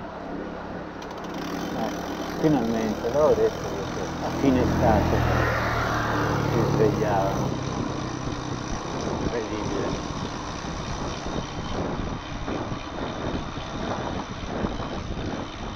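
Bicycle tyres roll and rattle over a rough road.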